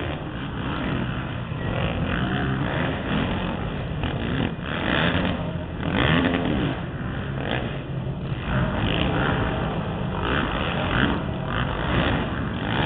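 Dirt bike engines rev and whine loudly outdoors.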